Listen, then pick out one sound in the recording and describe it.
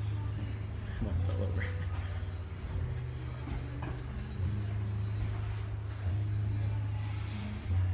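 A young man breathes out hard with effort.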